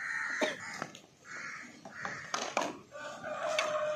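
Metal plates clink as they are set down on a concrete floor.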